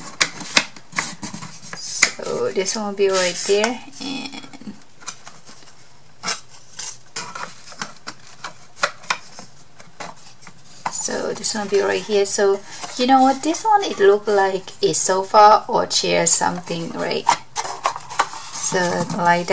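Thin wooden pieces tap and knock against a hard surface.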